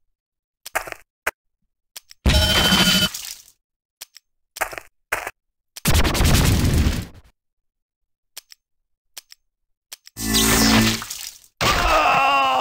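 Game sound effects of combat play in bursts.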